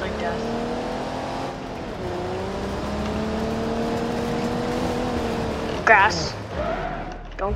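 A car engine drones steadily, rising slightly in pitch as it speeds up.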